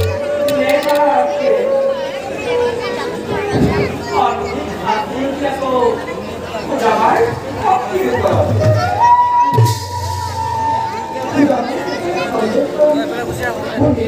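A man sings loudly through loudspeakers.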